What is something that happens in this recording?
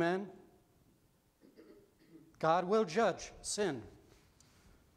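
A middle-aged man speaks with animation into a microphone in a reverberant hall.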